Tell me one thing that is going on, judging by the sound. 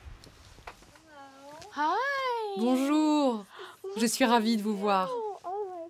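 A woman greets someone with excited, high-pitched cries close by.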